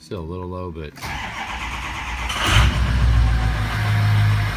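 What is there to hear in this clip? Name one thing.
An engine cranks and starts with a loud roar.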